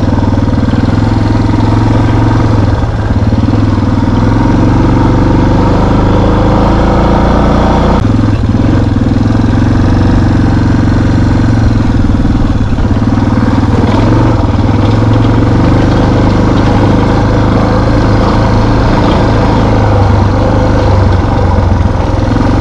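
Tyres crunch and rumble over a dirt track.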